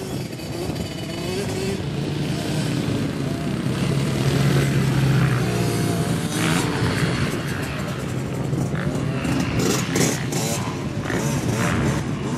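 A dirt bike engine buzzes and revs nearby.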